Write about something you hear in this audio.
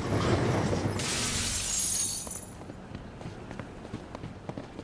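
Wind rushes past as a figure leaps and glides.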